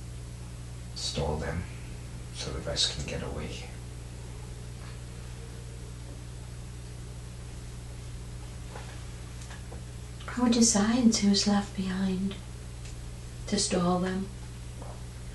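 An elderly woman snores and murmurs in her sleep nearby.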